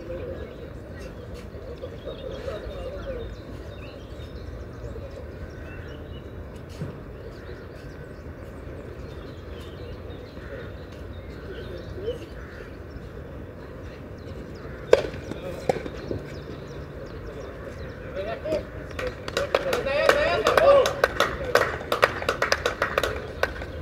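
Spectators chat quietly in the background outdoors.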